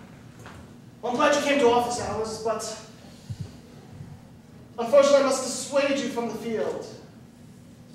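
A young man speaks loudly with animation on a stage.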